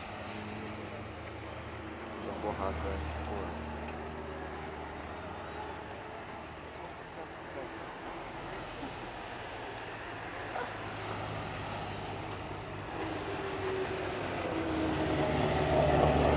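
Rally car engines roar and rev as cars race past.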